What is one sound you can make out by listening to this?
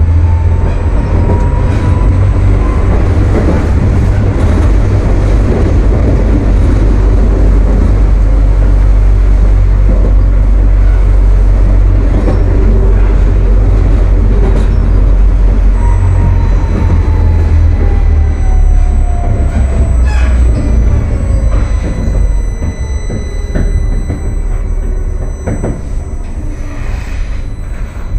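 A tram rumbles and rattles along its rails.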